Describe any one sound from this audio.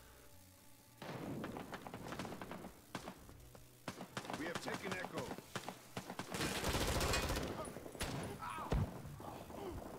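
Rifle shots crack in quick bursts, echoing outdoors.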